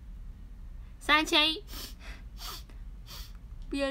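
A young woman speaks brightly and closely, with a high voice.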